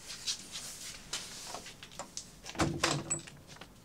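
A door opens with a creak.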